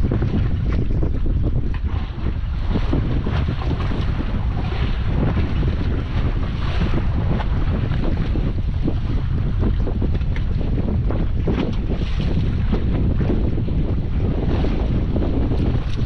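Waves splash against the side of a boat.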